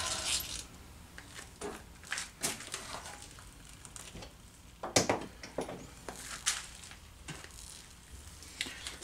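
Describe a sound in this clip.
Metal parts of a lathe click and clunk as levers are moved.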